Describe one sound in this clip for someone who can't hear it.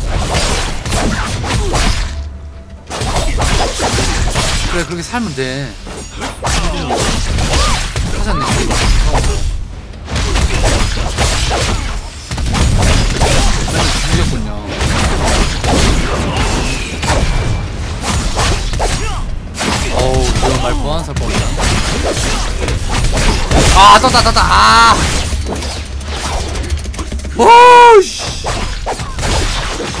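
Swords clash and magic effects burst in a game.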